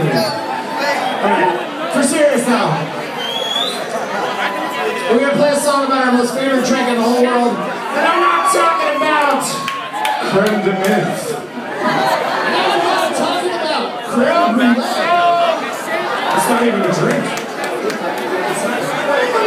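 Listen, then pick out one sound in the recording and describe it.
A live band plays loudly in a large echoing hall.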